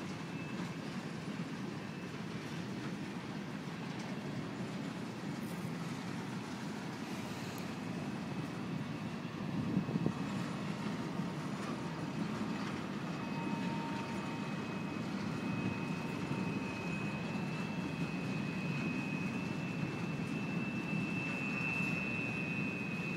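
A freight train rumbles steadily past close by, its wheels clattering on the rails.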